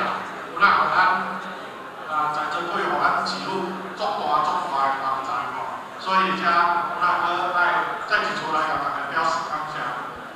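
A middle-aged man speaks with animation through a microphone and loudspeakers.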